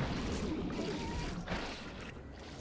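Fantasy battle sound effects whoosh and crackle.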